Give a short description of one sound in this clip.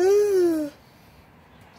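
A young girl yawns loudly close by.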